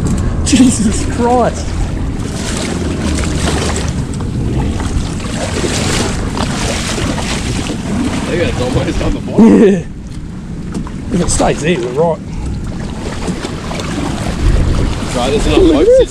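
Water laps against a boat's hull.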